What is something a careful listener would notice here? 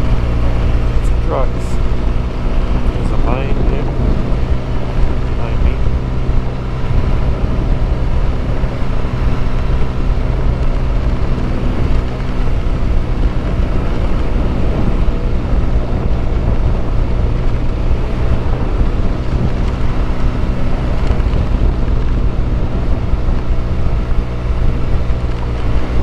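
Tyres crunch and rumble over a dirt road.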